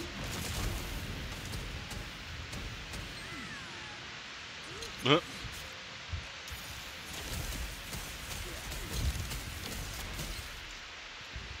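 Fiery magic spells roar and crackle in a game.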